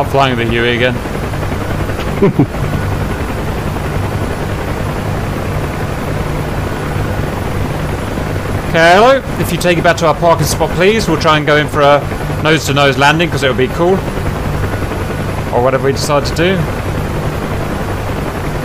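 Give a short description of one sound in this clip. A helicopter engine drones steadily with its rotor thumping.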